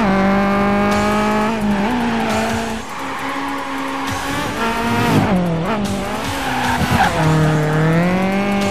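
A race car engine roars at high revs, its pitch rising and dropping as it shifts gears.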